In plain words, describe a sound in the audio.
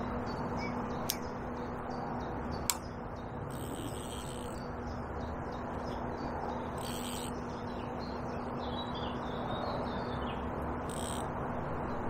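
Wind blows steadily outdoors, rustling leaves.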